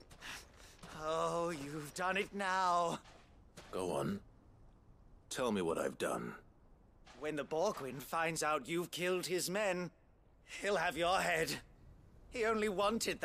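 A man shouts angrily and excitedly.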